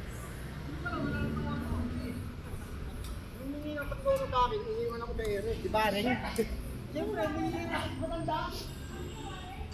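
A young woman talks close by with animation.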